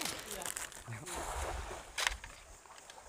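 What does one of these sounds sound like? A fishing net splashes onto the surface of a river.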